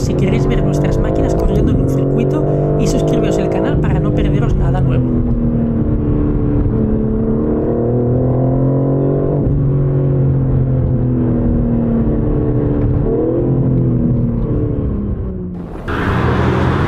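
A car engine hums and revs from inside the cabin, rising and falling in pitch.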